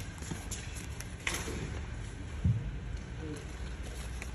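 A paper sticker sheet rustles and crinkles in a hand.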